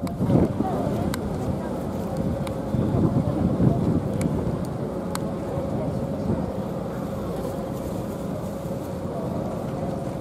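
A crowd of men murmur and talk nearby.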